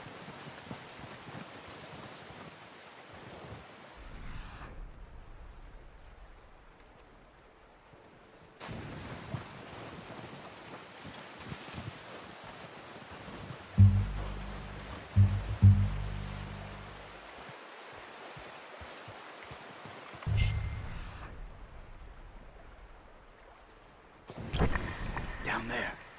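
Footsteps crunch slowly through deep snow.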